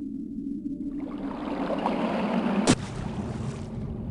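Water gurgles and bubbles as someone swims underwater.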